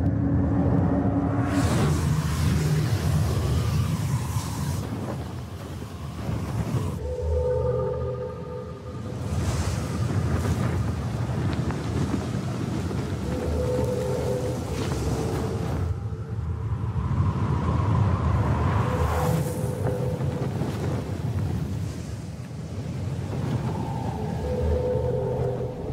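Strong wind blows and hisses across open ground.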